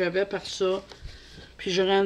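A paper page rustles as it turns.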